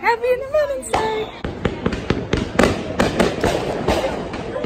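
Fireworks pop and crackle in the distance.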